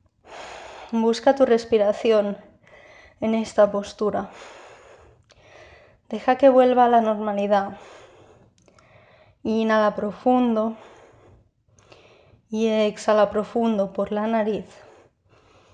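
A young woman speaks calmly and slowly, close to the microphone.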